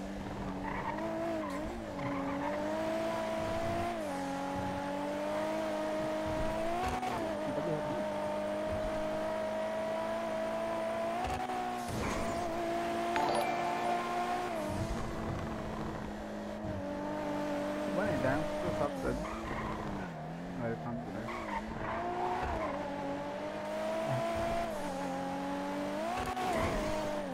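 A sports car engine hums loudly and revs up and down through gear changes.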